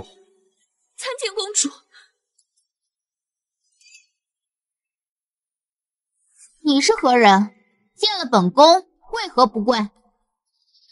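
A young woman speaks with strain, close by.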